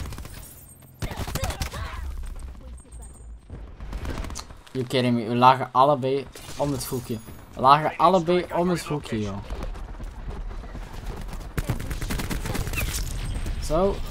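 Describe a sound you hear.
Rapid gunfire crackles in a video game.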